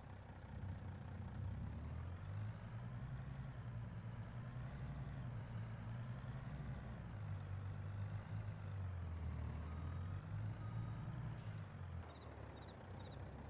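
A truck's diesel engine rumbles steadily as it drives.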